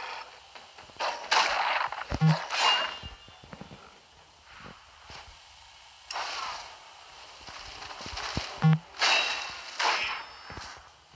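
A sword swings and strikes with sharp whooshes.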